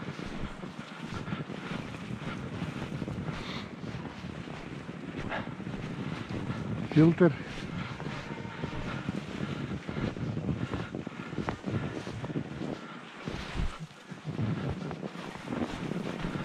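Bicycle tyres crunch and rumble over packed snow.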